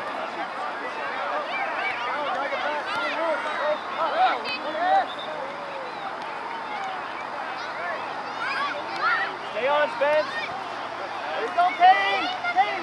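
Young players call out to each other across the field.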